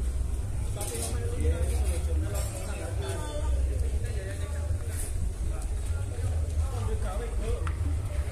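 Several men talk casually nearby outdoors.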